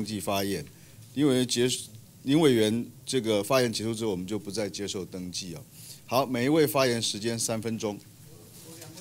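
A young man reads out into a microphone.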